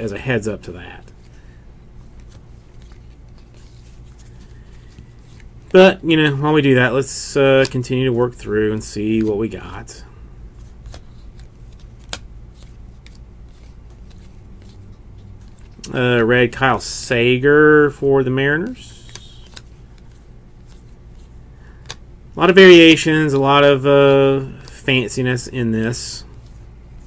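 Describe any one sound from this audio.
Trading cards slide and flick softly against one another.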